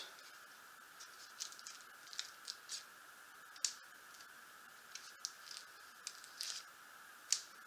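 A sheet of plastic crinkles.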